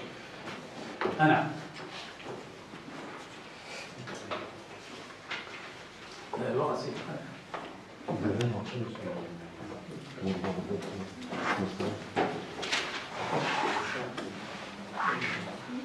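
An elderly man speaks calmly nearby, pausing between phrases.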